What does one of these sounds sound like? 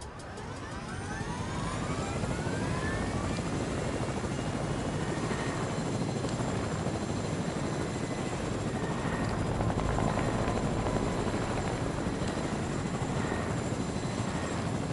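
A helicopter's rotor whirs and thumps steadily.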